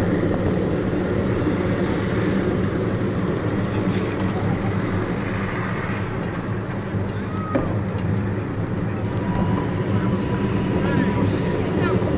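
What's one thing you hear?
Bicycle tyres hum on asphalt.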